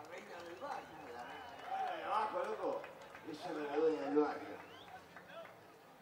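A man speaks animatedly into a microphone through loudspeakers outdoors.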